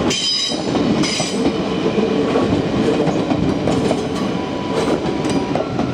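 A train passes close by with a rushing roar.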